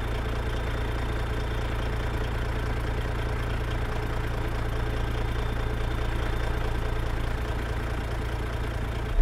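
A truck's diesel engine idles with a deep, steady rumble.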